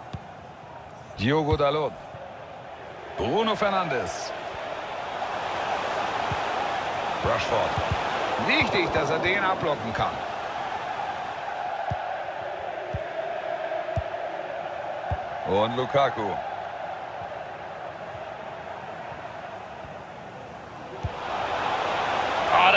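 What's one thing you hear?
A large crowd cheers and chants steadily in a stadium.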